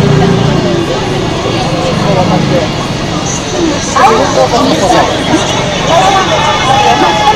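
A large crowd chatters outdoors, with many voices of men and women talking at once nearby.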